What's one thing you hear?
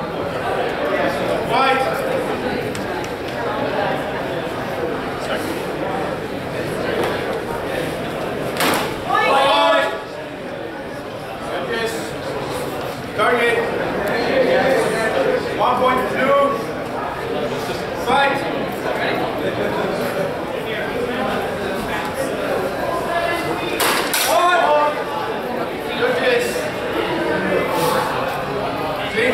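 People chatter in the background.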